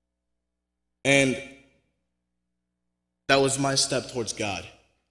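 A young man speaks into a microphone in short bursts, with reverberation trailing off after each phrase.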